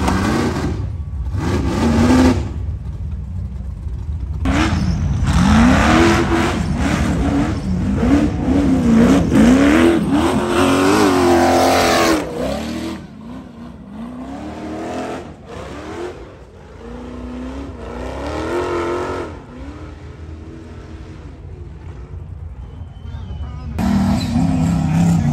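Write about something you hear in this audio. An off-road vehicle's engine revs hard, rising and falling in pitch.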